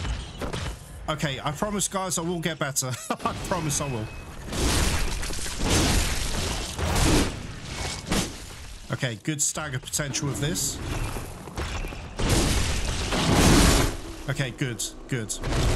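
Heavy blades slash and strike with wet thuds.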